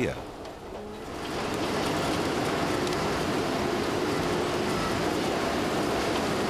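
A heavy machine's engine rumbles steadily.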